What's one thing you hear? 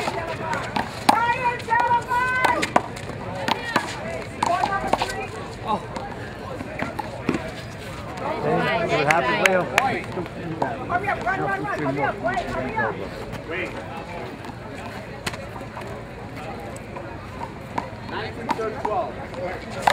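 A rubber ball smacks against a wall and bounces off the ground with sharp slaps.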